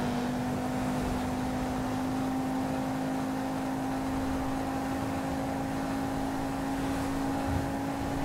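A sports car engine hums steadily at high speed.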